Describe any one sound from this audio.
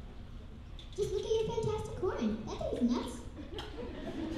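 A second young girl sings through a microphone in reply.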